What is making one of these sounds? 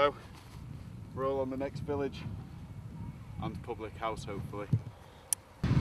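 A young man speaks cheerfully and close by, outdoors.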